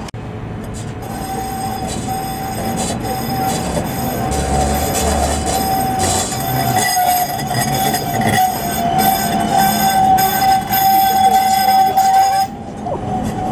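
A tram's wheels squeal steadily on a curve.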